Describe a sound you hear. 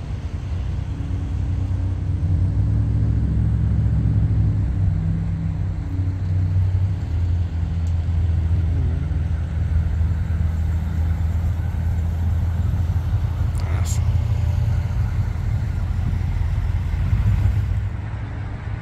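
A vintage sedan's engine rumbles as the car drives past.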